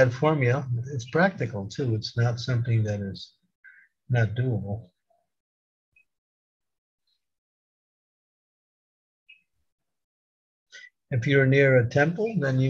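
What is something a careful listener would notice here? An elderly man speaks calmly over an online call, pausing now and then.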